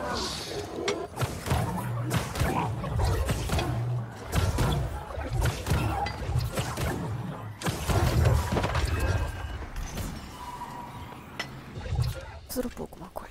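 Loud video game combat crashes and booms.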